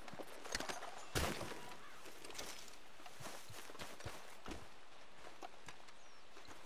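Footsteps crunch through grass and brush outdoors.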